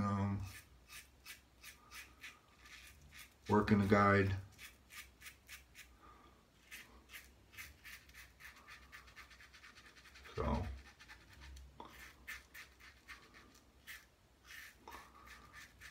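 A razor scrapes through stubble in short, quick strokes.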